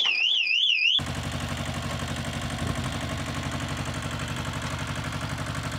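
A tractor engine runs with a steady rumble.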